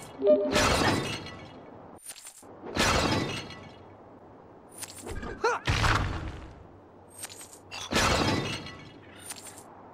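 Punches and blows land with loud thuds and bursts.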